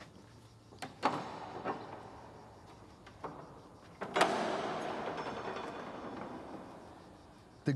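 A heavy wooden door swings open with a rumbling creak.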